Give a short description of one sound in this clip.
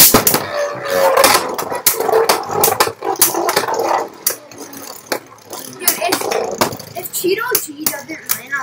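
Spinning tops clash together with sharp clacks.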